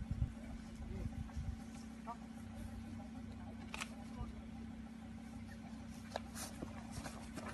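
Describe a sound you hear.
A man's footsteps crunch on dry grass.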